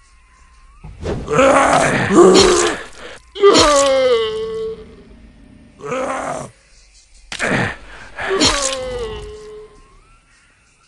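A zombie groans and snarls close by.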